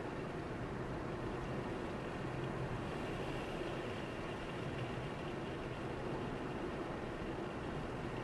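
A car's tyres hum steadily on a paved road.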